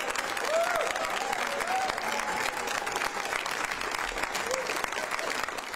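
People in a crowd whoop and shout.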